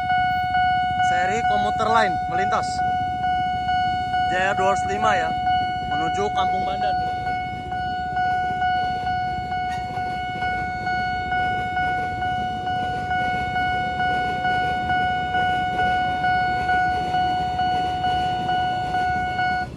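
A commuter train rumbles past on the tracks.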